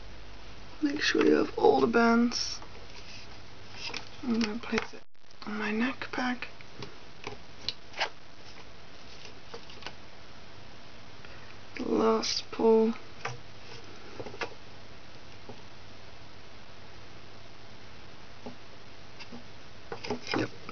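Small plastic clicks and soft snaps come from rubber bands being stretched and hooked onto a loom.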